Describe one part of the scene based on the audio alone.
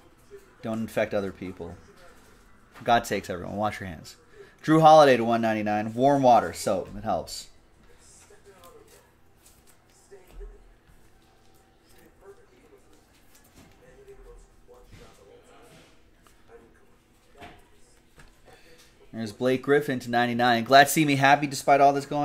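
Trading cards rustle and slide in hands.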